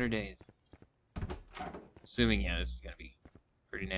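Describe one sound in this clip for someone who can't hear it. A door swings open.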